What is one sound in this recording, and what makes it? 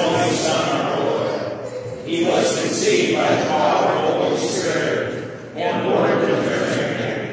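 A group of men and women sing together in a large echoing hall.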